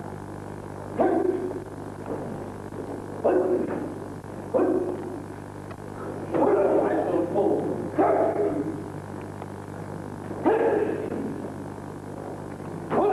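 Men shout short, sharp cries again and again in a large echoing hall.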